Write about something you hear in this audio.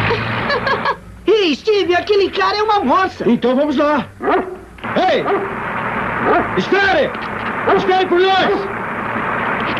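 A man shouts loudly outdoors.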